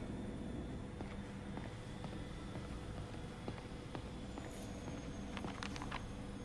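Footsteps tap softly on a hard floor.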